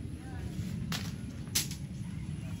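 A fruit stem snaps sharply.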